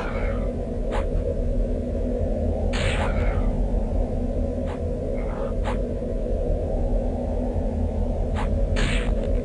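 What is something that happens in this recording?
Weapon blows strike in a fight, with sharp hits coming every second or two.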